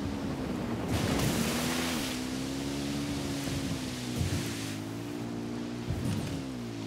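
Tyres spray through water and mud.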